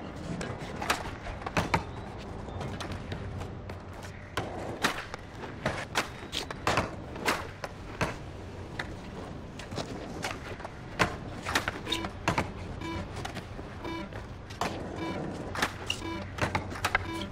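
Skateboard wheels roll over concrete with a steady rumble.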